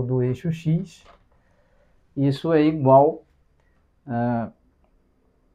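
A man speaks calmly close by, explaining in short phrases.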